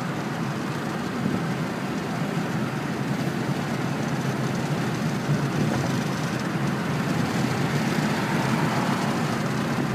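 Road noise rumbles inside a moving car.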